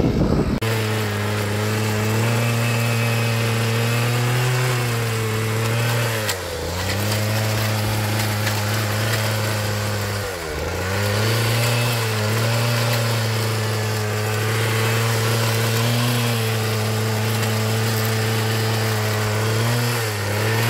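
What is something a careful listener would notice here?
A small motor hums steadily, dipping briefly as its tines bite into the soil.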